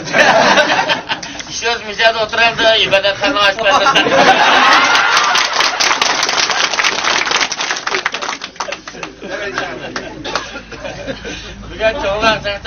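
A group of men talk and laugh loudly nearby.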